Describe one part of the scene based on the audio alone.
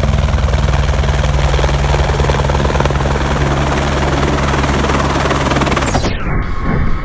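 A helicopter's rotor thumps loudly close by as the helicopter hovers.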